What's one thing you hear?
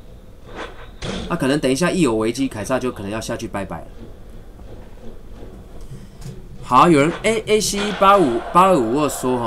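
A young man talks animatedly and close into a microphone.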